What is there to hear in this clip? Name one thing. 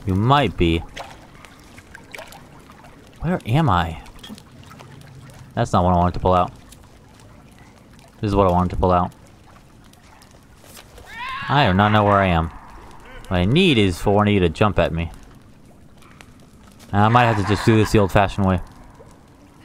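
A small campfire crackles softly.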